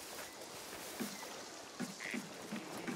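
Footsteps thud softly on wooden planks.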